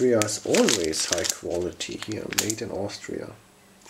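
A plastic wrapper crinkles in a hand.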